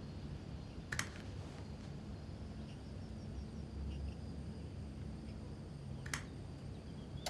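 A remote control clacks down onto a wooden table.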